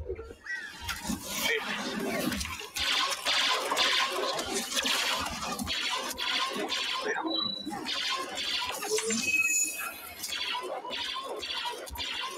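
Blaster shots fire rapidly.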